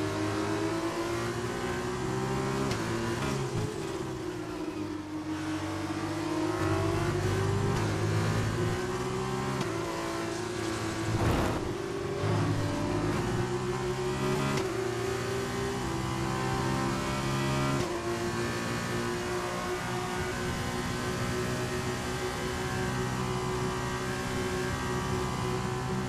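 A racing car engine roars at high revs, rising and dropping in pitch as the gears shift.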